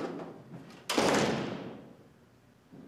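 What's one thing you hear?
A door slams shut with a loud bang.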